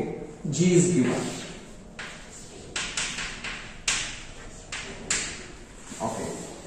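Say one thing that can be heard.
Chalk taps and scrapes on a blackboard in a series of short strokes.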